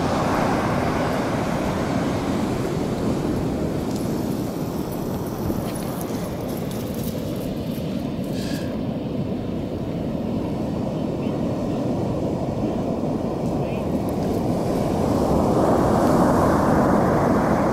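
Wind blows hard outdoors, rumbling and buffeting.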